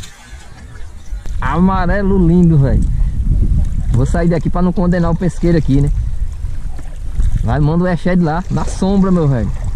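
A fish thrashes and splashes at the water's surface.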